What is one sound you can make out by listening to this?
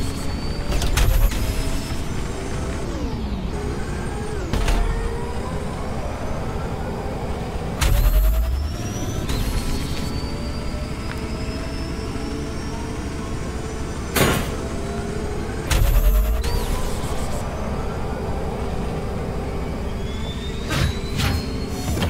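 Loud whooshes and thuds burst in now and then.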